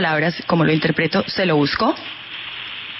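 A young woman speaks quickly and with animation, close to a microphone.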